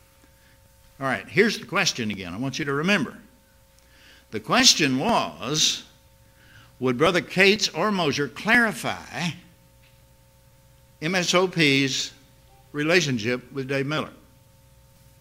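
An elderly man speaks calmly and deliberately into a microphone, in bursts with pauses.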